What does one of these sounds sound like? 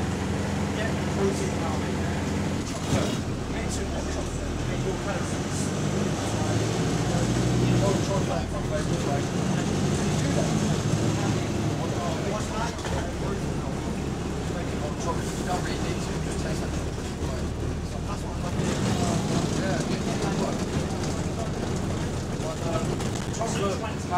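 A bus engine hums and rumbles steadily from inside the bus.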